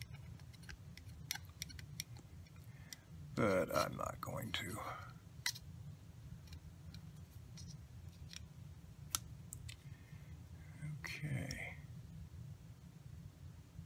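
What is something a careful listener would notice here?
A screwdriver clicks and scrapes against plastic.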